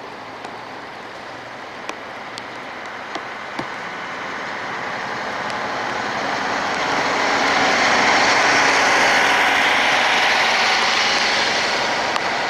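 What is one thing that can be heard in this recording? A bus approaches, roars past close by and fades away.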